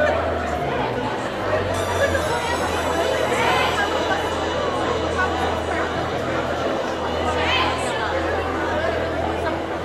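A large crowd of young people chatters and calls out in an echoing hall.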